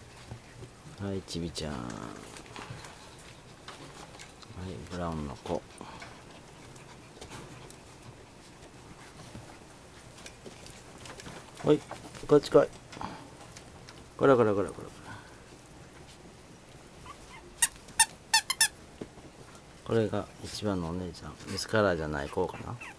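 Small puppies whimper and yelp in short bursts.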